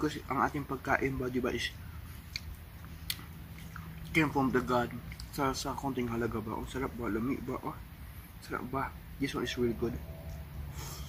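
A man talks close by, with pauses between phrases.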